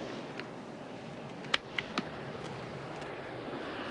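Briefcase latches click open.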